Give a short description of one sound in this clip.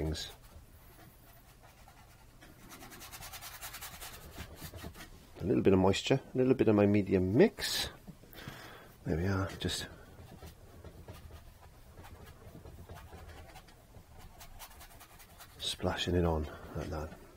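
A brush scrubs softly on canvas.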